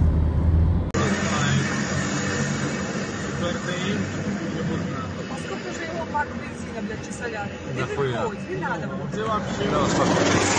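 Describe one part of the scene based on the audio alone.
A car engine hums from inside a moving car.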